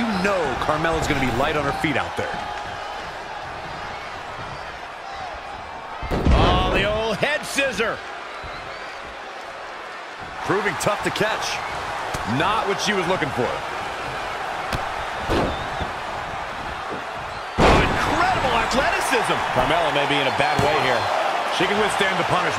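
A crowd cheers and murmurs throughout.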